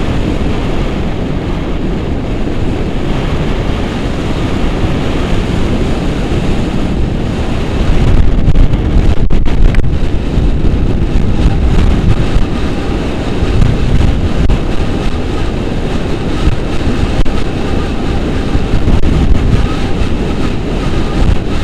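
Strong wind rushes and buffets loudly across the microphone outdoors.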